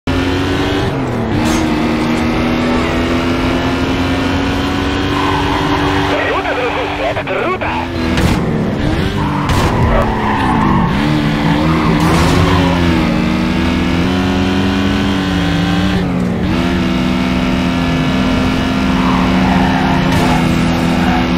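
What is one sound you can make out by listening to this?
A car engine roars at high revs, dropping in pitch with each gear change.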